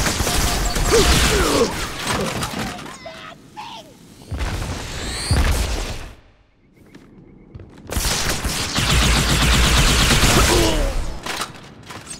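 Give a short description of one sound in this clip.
Energy guns fire in rapid, crackling bursts.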